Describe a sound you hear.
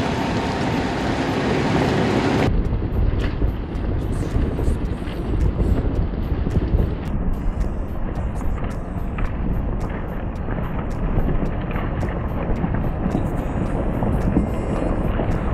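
Tyres roll and crunch slowly over gravel and dry leaves.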